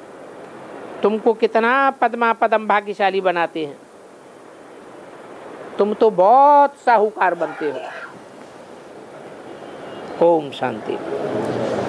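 An elderly man speaks slowly and with feeling into a microphone, with pauses.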